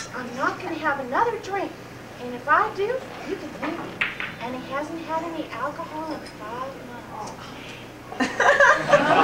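A woman answers calmly nearby.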